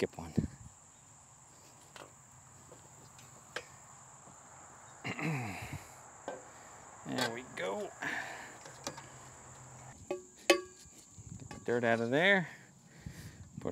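Metal poles clank and rattle together.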